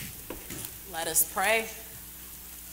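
A woman speaks calmly through a microphone in an echoing room.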